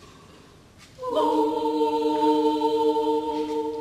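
A choir begins singing in a large echoing hall, holding a sustained chord.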